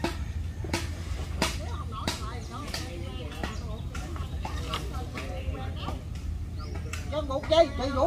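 A blade chops at wood up in a tree with sharp knocks.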